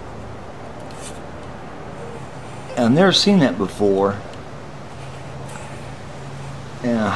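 A metal tool scrapes lightly along a guitar fretboard.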